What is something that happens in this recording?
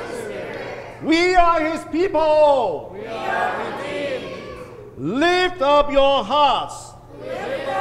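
A man sings chanted lines through a microphone.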